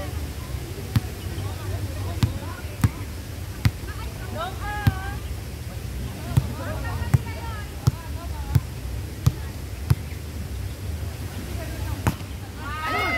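A ball bounces sharply on hard pavement, again and again.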